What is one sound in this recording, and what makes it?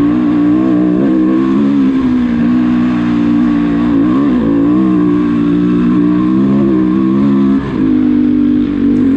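A dirt bike engine roars loudly up close, its pitch rising and dipping with the throttle.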